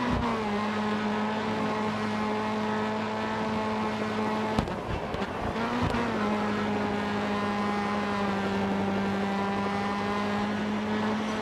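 A racing saloon car engine roars at high revs.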